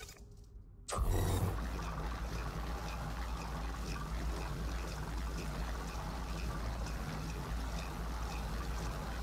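A machine starts up and hums steadily with a low drone.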